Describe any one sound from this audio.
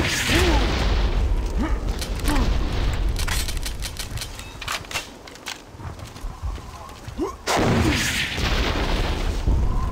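Guns fire in rapid bursts in a video game.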